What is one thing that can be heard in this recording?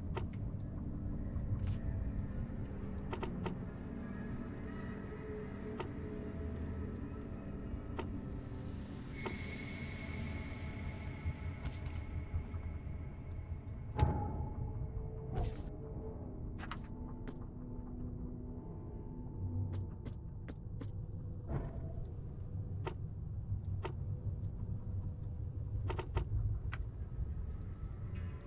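Soft interface clicks sound as menu options change.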